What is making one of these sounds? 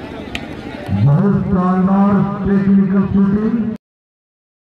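A crowd of men cheers and shouts loudly.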